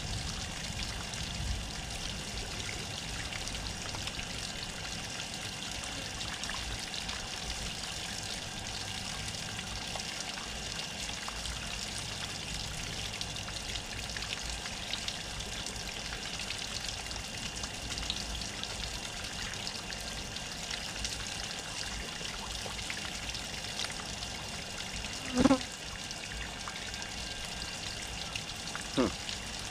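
Water from a hose splashes steadily onto raw poultry.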